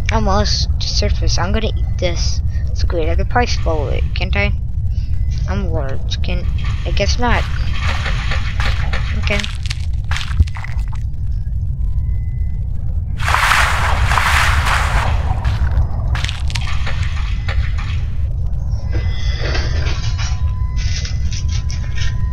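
A low underwater rumble drones steadily.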